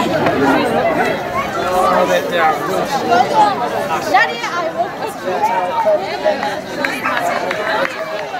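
A crowd of men and women chatters loudly nearby outdoors.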